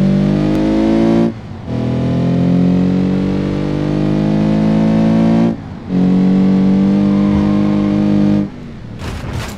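A car engine roars at high revs, dropping briefly between gear shifts.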